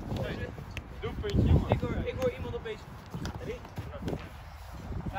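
Young boys talk nearby.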